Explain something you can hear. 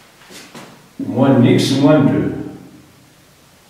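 A man speaks nearby, explaining calmly.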